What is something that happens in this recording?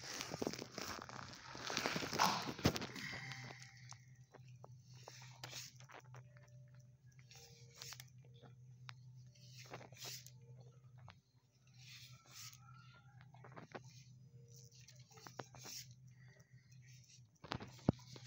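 A dog's claws click on a hard floor as it walks.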